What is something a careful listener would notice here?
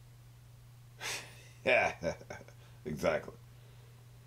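A man laughs briefly close by, heard through a microphone.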